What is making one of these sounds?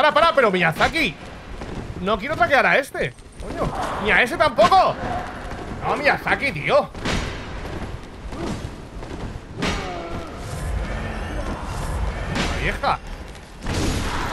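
Swords clang and slash in a fight.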